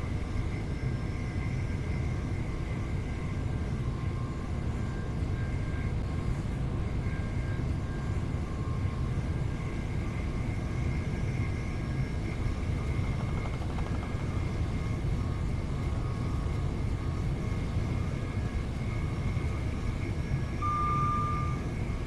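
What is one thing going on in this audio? A train rumbles steadily along the tracks from inside the cab.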